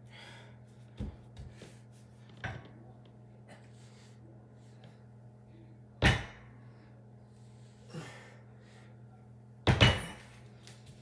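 A barbell with weight plates thuds down on a wooden floor.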